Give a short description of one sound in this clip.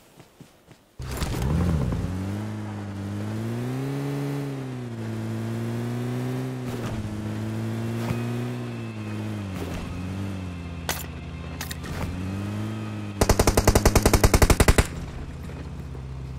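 A vehicle engine starts and hums steadily, rising and falling in pitch as it drives.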